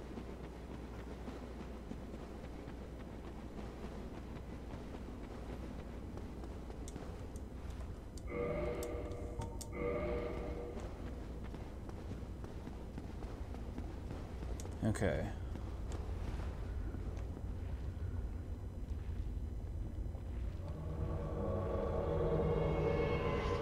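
Footsteps in armour clank on stone.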